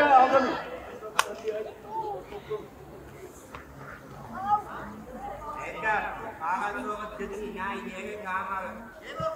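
Young children shout and call out outdoors.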